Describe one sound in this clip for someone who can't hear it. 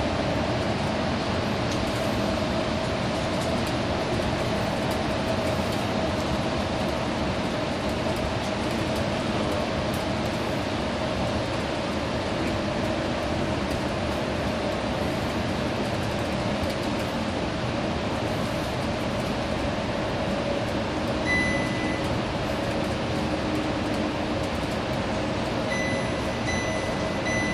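Traffic roars and echoes around in a tunnel.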